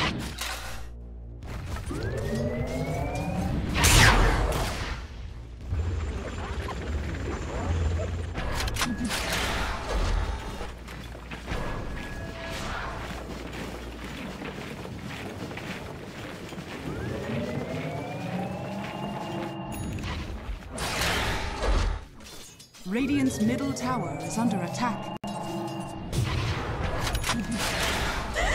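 Game spells whoosh and crackle in bursts.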